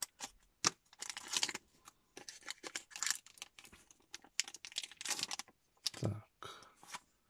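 A foil wrapper crinkles and rustles in hands.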